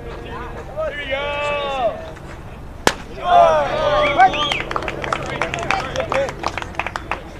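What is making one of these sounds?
Young men shout and cheer loudly outdoors.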